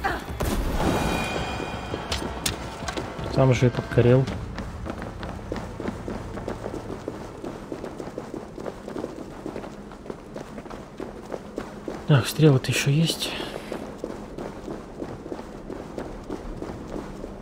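Footsteps scuff over stone.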